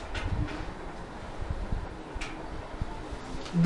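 A marker scratches across paper.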